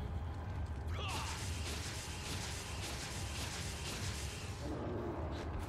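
A knife slashes repeatedly into wet flesh.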